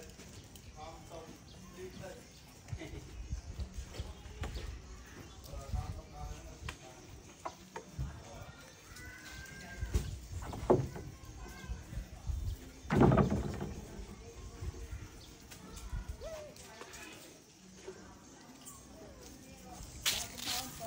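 A monkey chews food with soft smacking sounds.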